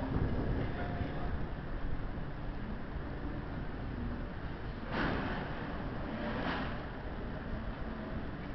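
An electric locomotive hums steadily nearby.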